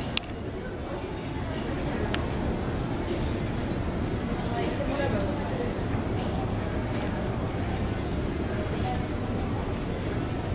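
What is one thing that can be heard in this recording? An escalator hums and rumbles steadily as it moves.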